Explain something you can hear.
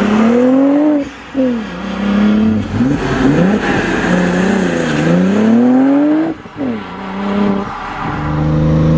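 A car engine revs hard and roars as it speeds past.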